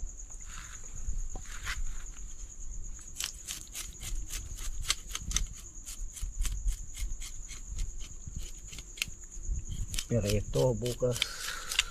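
A knife chops and scrapes against a stone slab.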